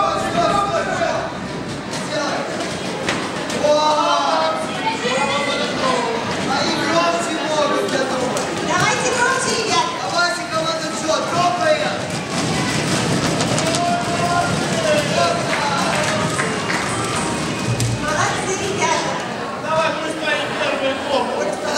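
A crowd of children chatters loudly.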